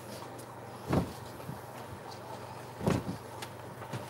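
A painting board knocks softly as it is shifted.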